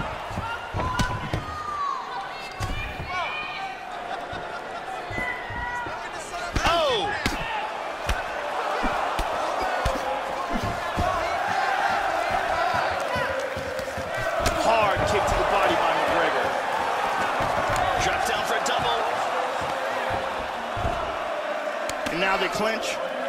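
Punches thud against a fighter's body.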